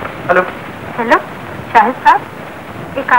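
A young woman talks on the telephone.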